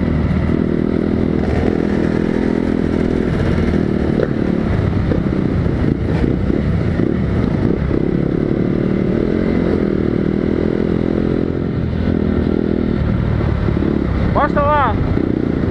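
A motorcycle engine drones and revs up close.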